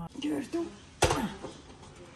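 A heavy metal pot clunks down onto a hot plate.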